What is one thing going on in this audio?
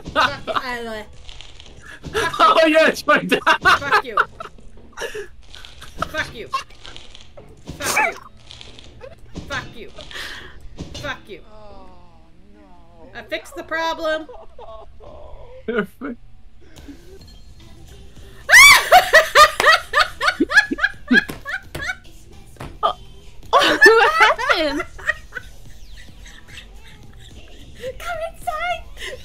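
A young woman talks and exclaims with animation close to a microphone.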